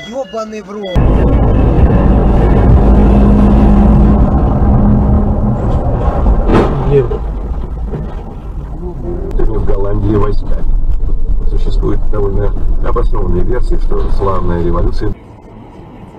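A truck engine rumbles loudly nearby.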